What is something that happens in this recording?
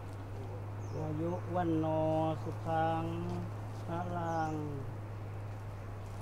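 An elderly man chants in a low, steady voice.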